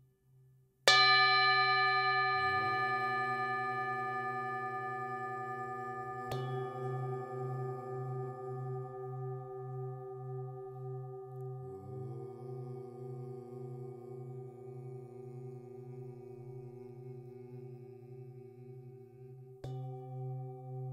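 A metal singing bowl is struck and rings with a long, slowly fading tone.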